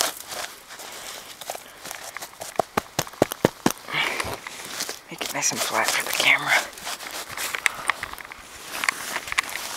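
Gloved hands scrape and rustle through dry leaves and wood chips on snowy ground.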